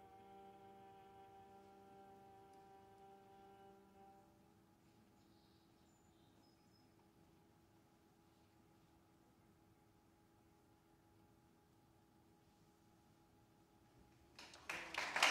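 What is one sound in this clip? A small string ensemble holds a final chord that slowly dies away.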